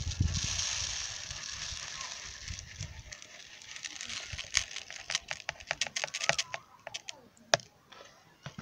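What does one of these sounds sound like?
Grains pour and rustle into a plastic bowl.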